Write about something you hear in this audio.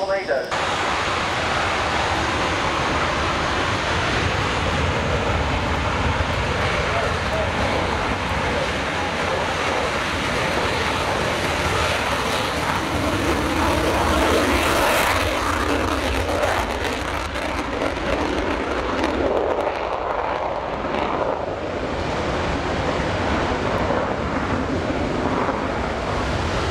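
Wind buffets outdoors.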